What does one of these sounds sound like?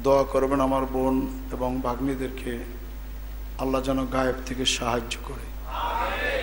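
An elderly man speaks through a microphone and loudspeakers with a slight echo, in a preaching tone.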